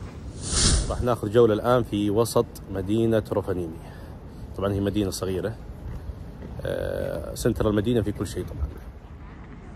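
A man talks calmly and close to the microphone, outdoors.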